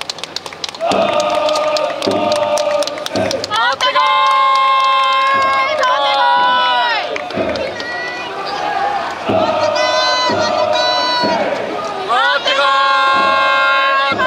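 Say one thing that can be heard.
Lively festival music plays outdoors on flutes and plucked strings.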